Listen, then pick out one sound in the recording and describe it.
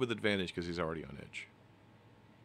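A man speaks briefly with animation over an online call.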